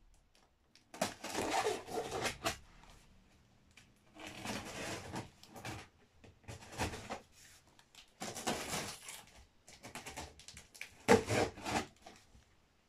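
Scissors slice through packing tape on a cardboard box.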